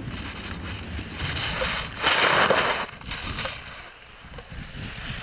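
Skis carve and scrape loudly across hard snow in bursts.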